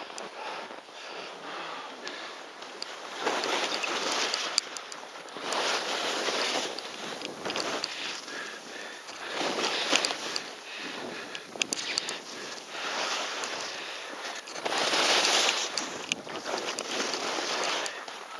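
Skis hiss and scrape over crusty snow in surging turns.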